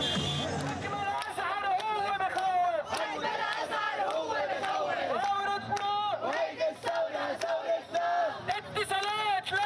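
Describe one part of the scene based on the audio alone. A young woman chants loudly through a megaphone.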